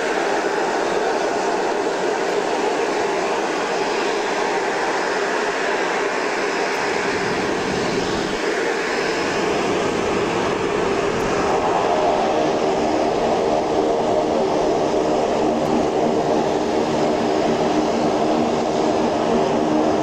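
A propeller plane's engines drone loudly and steadily as it taxis closer.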